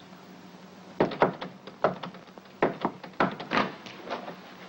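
A woman knocks firmly on a wooden door.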